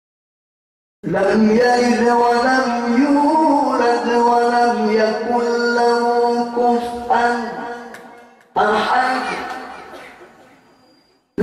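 A man sings a long drawn-out melodic chant into a microphone, amplified through loudspeakers with an echo.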